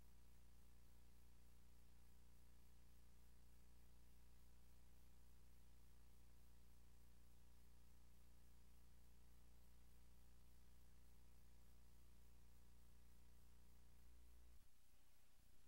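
An arcade game plays a steady electronic drone, which cuts off near the end.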